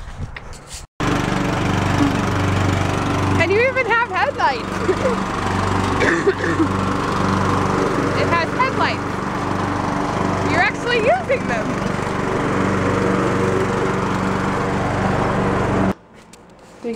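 A riding lawn mower engine hums loudly and steadily.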